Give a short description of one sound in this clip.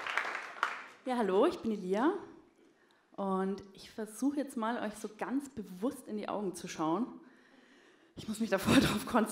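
A young woman speaks calmly into a microphone through loudspeakers in a hall.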